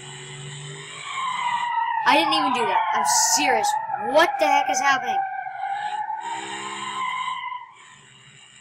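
Tyres screech as a car skids and spins.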